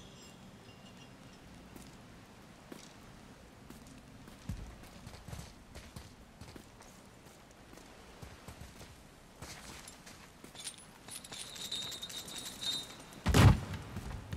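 A heavy metal chain rattles and clanks.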